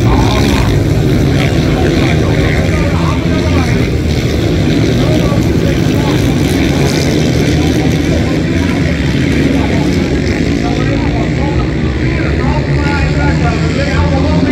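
Motorcycle engines roar loudly.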